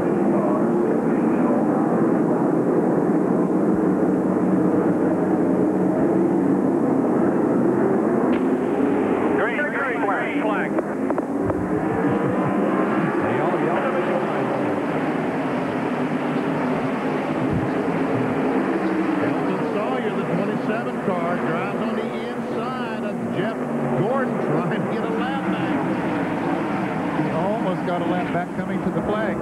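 Race car engines roar loudly as a pack of cars speeds around a track.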